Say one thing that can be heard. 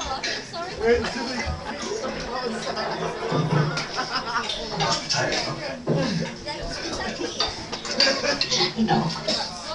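Footsteps thud across a floor close by.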